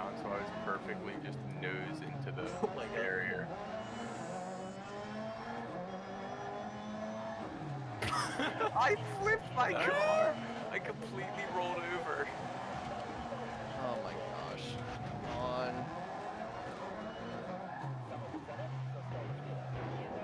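A race car engine roars steadily and shifts pitch as it revs up and down.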